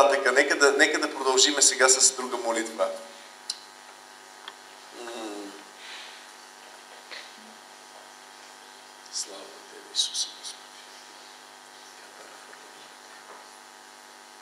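A middle-aged man speaks into a microphone with a laugh, then in short bursts between pauses.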